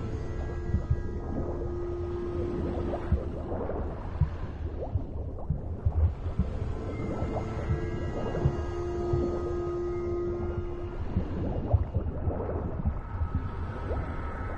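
Water churns and gurgles as a swimmer strokes underwater.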